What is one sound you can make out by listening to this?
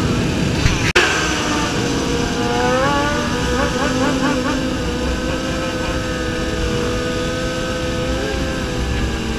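A motorcycle engine revs up and down nearby.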